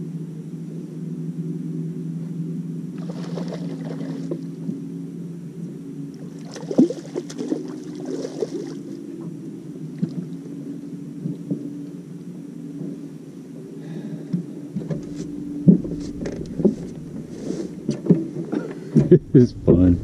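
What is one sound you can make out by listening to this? A boat's engine hums steadily nearby.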